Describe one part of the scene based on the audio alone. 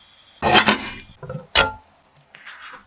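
A glass lid clinks onto a pan.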